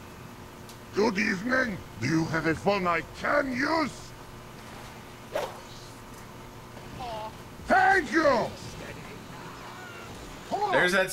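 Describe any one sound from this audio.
A middle-aged man speaks close to a microphone.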